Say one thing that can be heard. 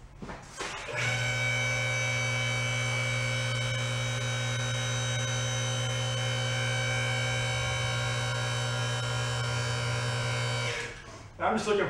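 A lift motor hums steadily while raising a van.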